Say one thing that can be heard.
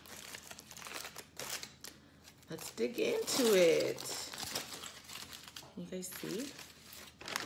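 Aluminium foil crinkles as it is unwrapped.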